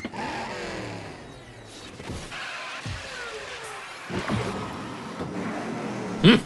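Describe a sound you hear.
A race car engine whines at high speed.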